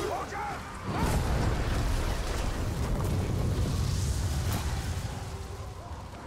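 A fiery blast roars and crackles.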